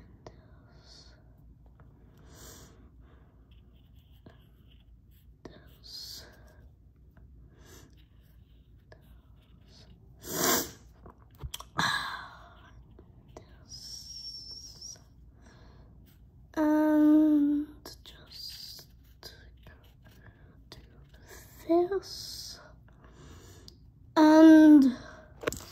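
A felt-tip marker squeaks and scratches softly across a paper towel.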